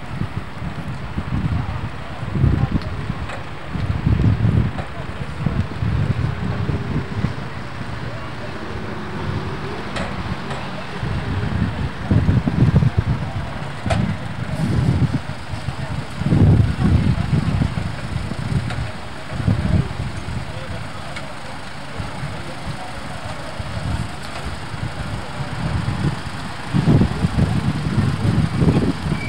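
Gusts of wind rumble and buffet outdoors.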